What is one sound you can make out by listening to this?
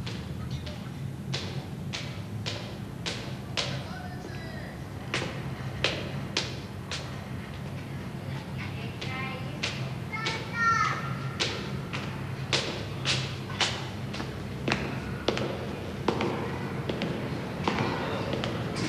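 Footsteps climb stone stairs in an echoing stairwell.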